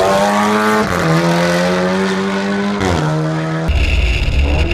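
A race car engine roars past at high speed, shifting up through the gears.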